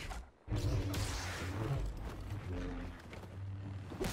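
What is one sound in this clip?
A lightsaber hums and swings.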